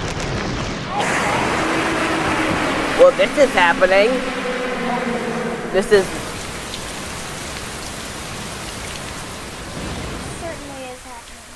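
Heavy rain pours down steadily.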